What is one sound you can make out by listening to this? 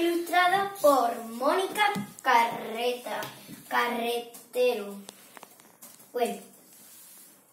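A young girl sings nearby.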